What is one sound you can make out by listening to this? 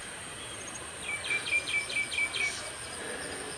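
A small bird sings a quick series of chirping notes nearby.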